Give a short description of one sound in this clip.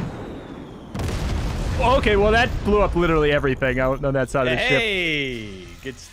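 Explosions boom and rumble as structures are blown apart.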